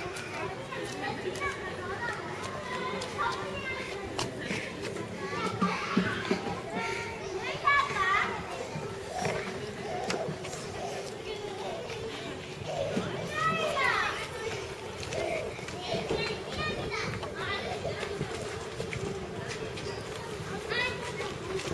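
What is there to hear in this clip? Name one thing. Children's voices chatter and call out nearby outdoors.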